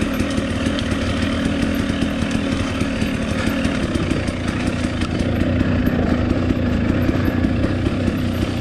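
Tyres crunch over a dirt trail.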